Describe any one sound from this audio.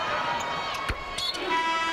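A basketball slams through the rim with a sharp clang.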